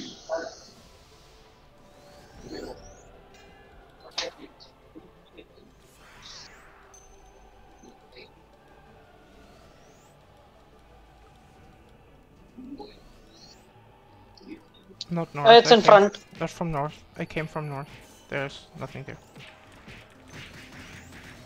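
Game spell effects chime and burst.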